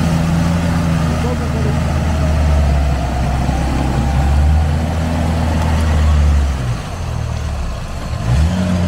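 Tyres squelch and splash through deep mud.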